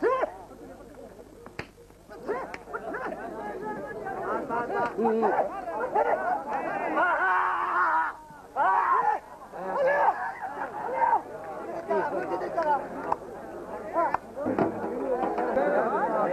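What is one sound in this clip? A large outdoor crowd of men cheers and shouts.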